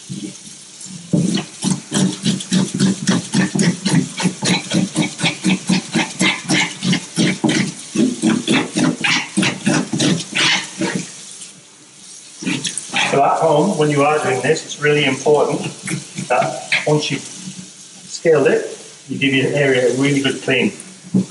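Water runs steadily from a tap into a metal sink.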